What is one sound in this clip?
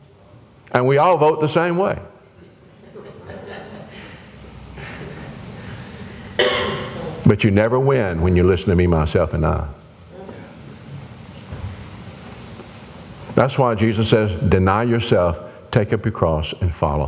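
An elderly man preaches with animation through a microphone in an echoing hall.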